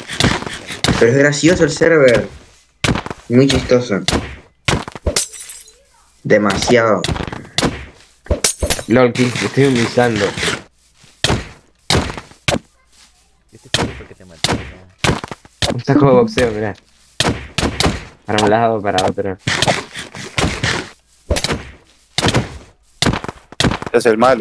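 Quick sword hits land again and again in a video game fight.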